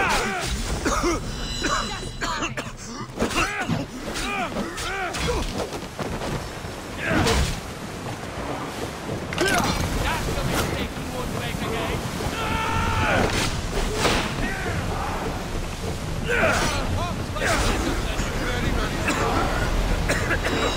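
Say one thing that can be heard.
Sea waves wash steadily against a ship's hull.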